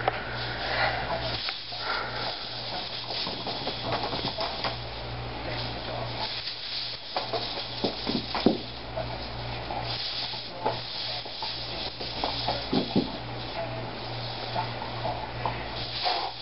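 A plastic hoop whirs and rattles as it spins.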